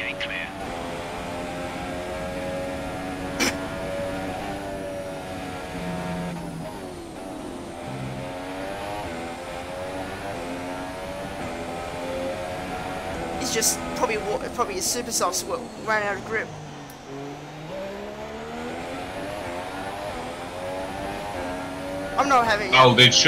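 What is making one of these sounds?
A racing car engine screams at high revs, rising and falling as it shifts gears.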